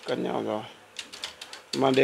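A button on a cassette deck clicks as it is pressed.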